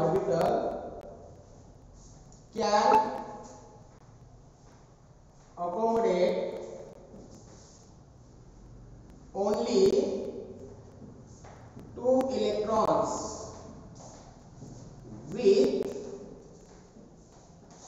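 A man speaks slowly in short phrases with long pauses, in an echoing room.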